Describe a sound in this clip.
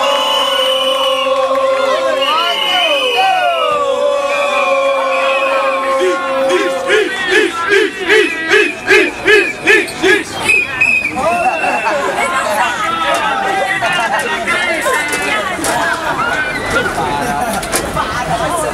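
A crowd of young people sings and chants loudly outdoors.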